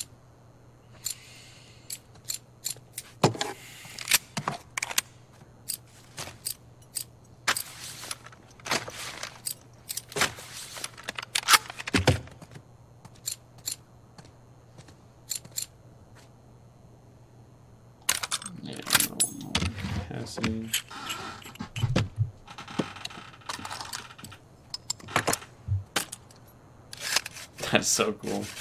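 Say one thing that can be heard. Metal gun parts click and clack as they are handled.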